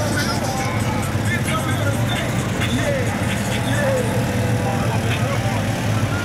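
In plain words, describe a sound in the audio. Off-road vehicle engines rumble steadily as they roll slowly past outdoors.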